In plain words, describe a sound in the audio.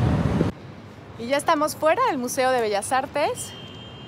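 A young woman talks cheerfully into a close microphone.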